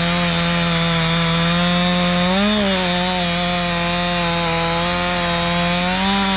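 A chainsaw engine rises and dips in pitch as it bites into wood.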